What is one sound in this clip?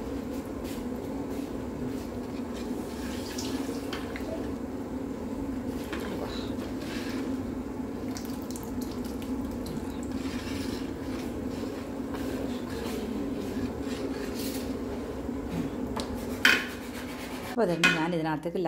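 A metal ladle stirs thick batter in a pot with soft scraping and sloshing.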